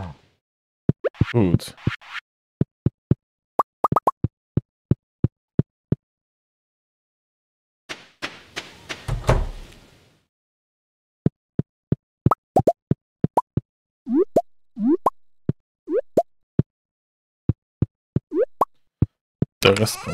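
Footsteps tap steadily across a wooden floor.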